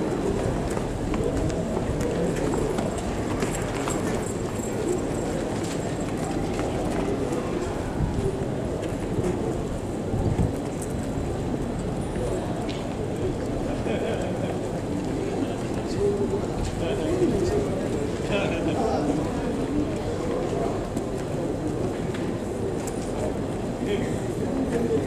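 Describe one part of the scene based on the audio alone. Horses' hooves thud softly on sand as they are led by at a walk.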